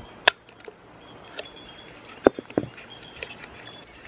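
Pliers snip and click against a clay pot.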